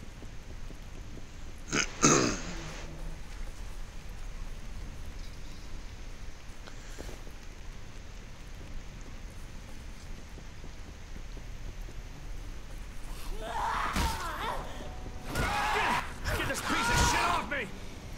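Footsteps run quickly over rubble.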